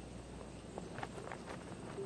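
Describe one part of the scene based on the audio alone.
A putter taps a golf ball softly.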